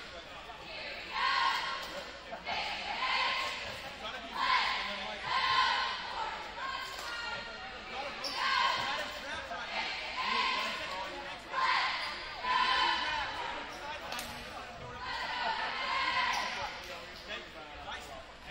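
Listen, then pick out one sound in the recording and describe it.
A crowd in a large echoing gym cheers and chants in rhythmic bursts.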